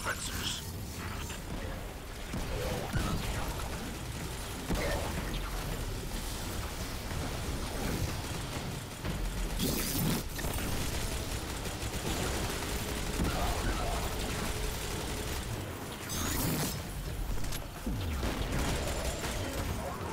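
A man talks through a microphone with animation.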